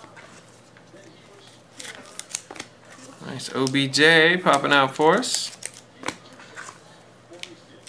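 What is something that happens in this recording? Cardboard and plastic wrapping rustle softly in hands.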